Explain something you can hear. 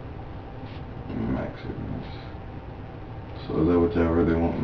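A man speaks quietly, heard through a distant room microphone.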